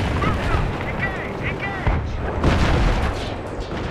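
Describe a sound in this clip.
Gunfire cracks in short bursts nearby.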